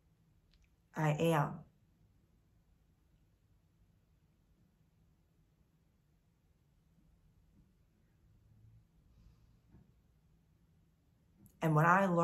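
A young woman speaks calmly and close to a microphone, in short bursts with long pauses.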